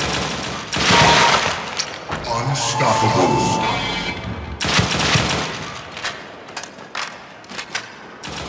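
Rifle shots ring out in short bursts.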